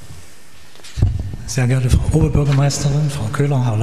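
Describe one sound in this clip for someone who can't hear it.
A man speaks over loudspeakers in a large echoing hall.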